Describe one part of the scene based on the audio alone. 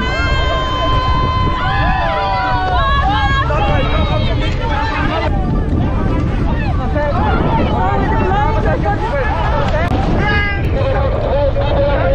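Waves splash against inflatable boats.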